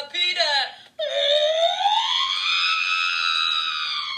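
A small robot whistles with a long rising and falling tone.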